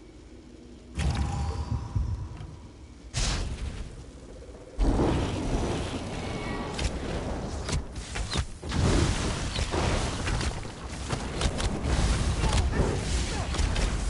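Fiery magic blasts burst and crackle in quick bursts.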